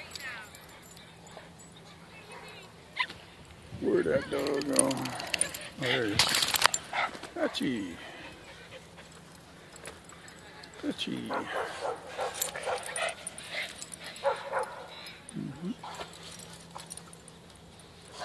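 Dogs growl and scuffle playfully close by.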